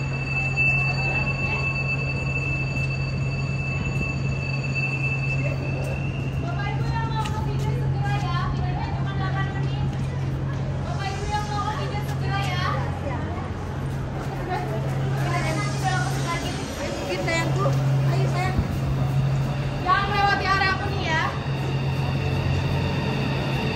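A high-speed train glides slowly in with a steady low hum.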